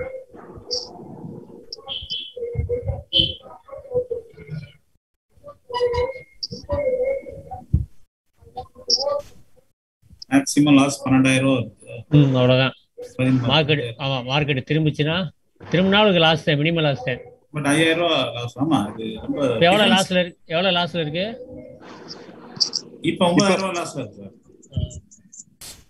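A man talks steadily through an online call.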